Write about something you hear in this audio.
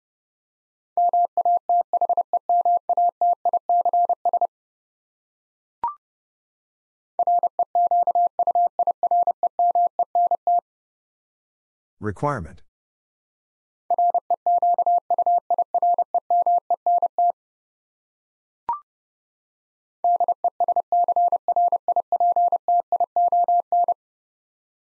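A telegraph key taps out fast, steady Morse code beeps.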